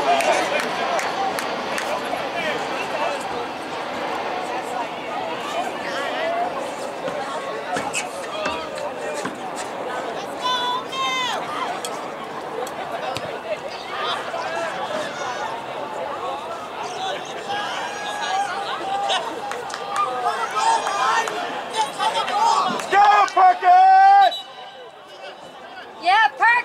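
A crowd of spectators murmurs and chatters outdoors.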